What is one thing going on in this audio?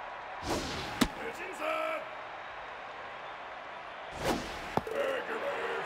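A baseball bat cracks sharply against a ball.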